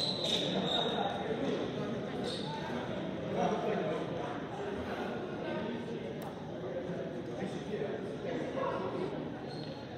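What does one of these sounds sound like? A team of young players talks and calls out together in a huddle, echoing in a large hall.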